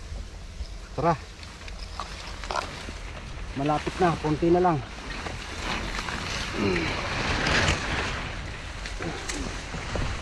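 A man speaks in short bursts close by.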